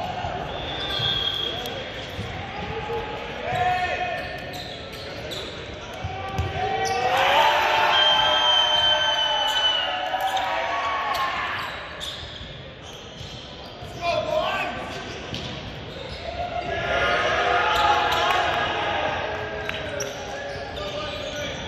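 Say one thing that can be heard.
Young men shout and cheer together in a large echoing hall.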